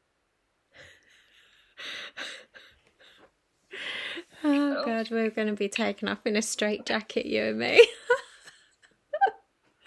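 A woman laughs through an online call.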